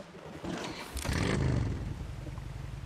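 A motorcycle engine starts and idles with a low rumble.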